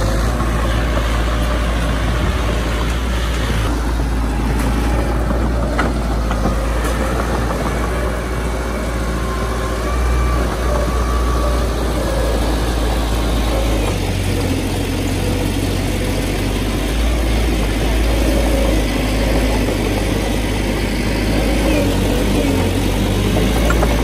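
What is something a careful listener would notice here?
Bulldozer tracks clank and squeak as the machine moves.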